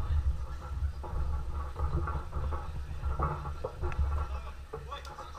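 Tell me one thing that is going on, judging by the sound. Fighters' bodies thud against each other and the mat.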